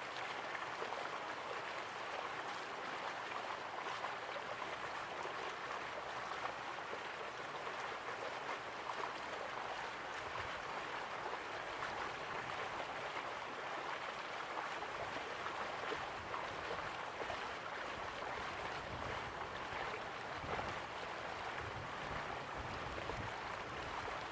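Waterfalls rush steadily in the distance.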